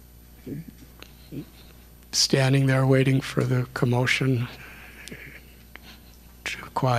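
An elderly man speaks calmly and warmly into a microphone, close by.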